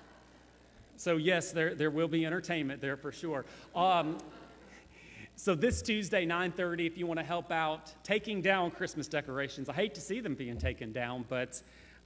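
A man speaks warmly through a microphone.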